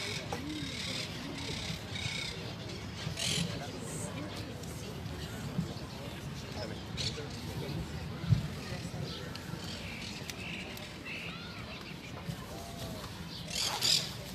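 A woman speaks calmly into a microphone over loudspeakers outdoors.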